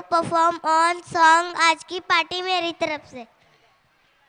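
Children sing a song loudly together.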